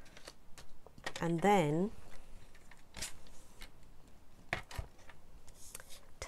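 A paper trimmer's plastic arm clicks and knocks as it is lifted and set down.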